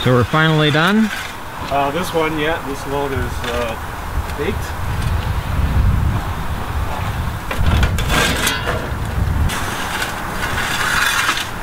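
A wooden peel scrapes across an oven's brick floor.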